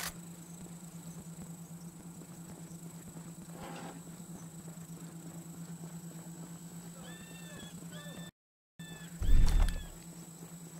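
Boots run quickly on hard ground.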